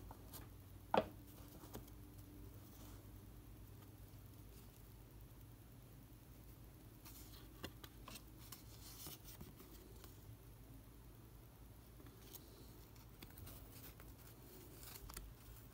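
Cards tap and flick as they are shuffled through.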